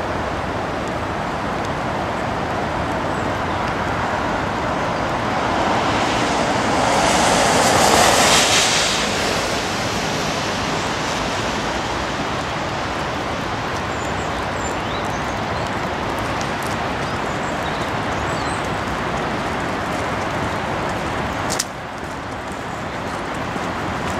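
Strong wind blows and rushes across the microphone outdoors, with gusts that swell and ease.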